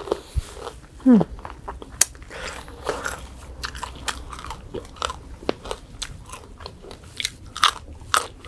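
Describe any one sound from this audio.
A young woman chews and crunches crisp food close to a microphone.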